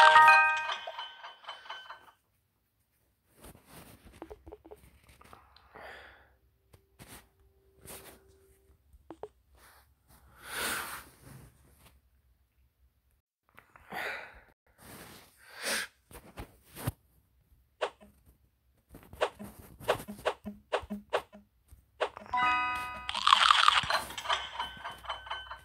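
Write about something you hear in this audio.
A game's bright chime sounds for a finished level.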